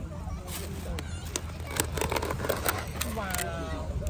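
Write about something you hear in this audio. A plastic lid crinkles and clicks as it is pried off a container.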